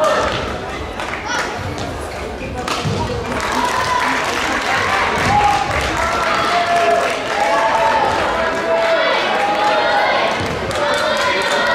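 A shuttlecock is struck with rackets in quick, sharp taps in an echoing hall.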